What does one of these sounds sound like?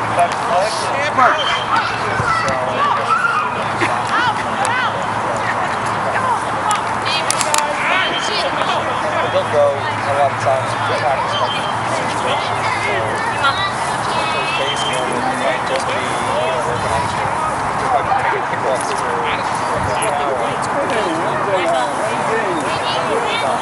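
Young boys shout and call to each other across an open field.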